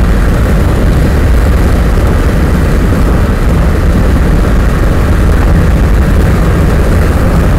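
Wind rumbles loudly against a moving vehicle.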